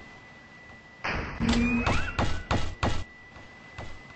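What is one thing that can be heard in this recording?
A video game's energy shield zaps in short bursts.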